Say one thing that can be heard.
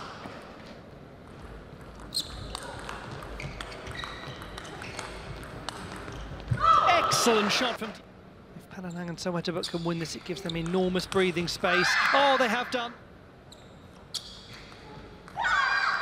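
A ping-pong ball clicks quickly back and forth off paddles and a table.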